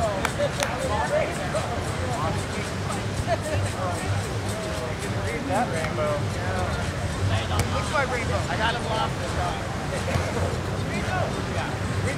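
Young men and women shout and call out during a game in the distance.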